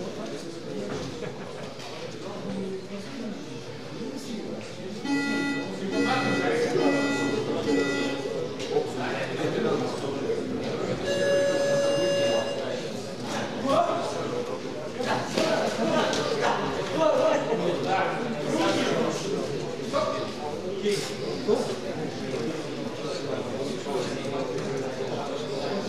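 A crowd murmurs and talks in a large echoing hall.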